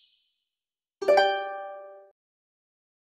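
A game tile clicks into place with a bright chime.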